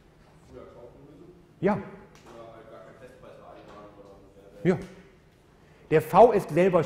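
A man lectures calmly through a microphone in a large hall.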